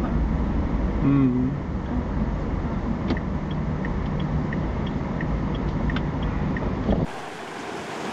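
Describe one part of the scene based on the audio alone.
A car engine rumbles from inside a moving car.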